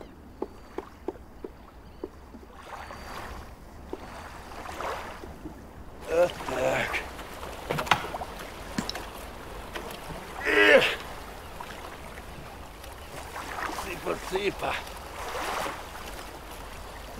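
An oar splashes in water.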